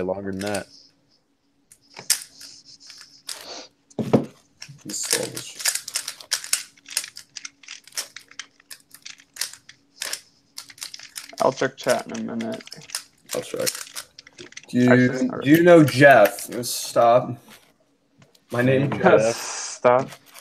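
Plastic puzzle cube pieces click and clatter rapidly as a cube is turned.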